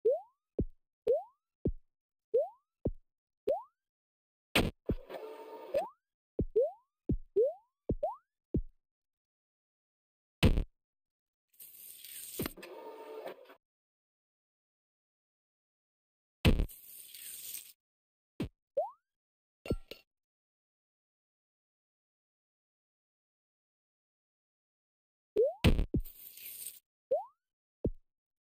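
Short rising blips sound as a game character jumps.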